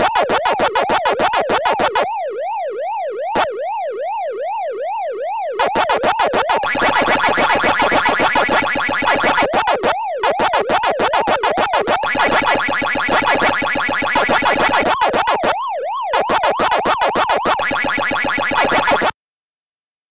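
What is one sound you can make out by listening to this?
Electronic game chomping sounds repeat rapidly.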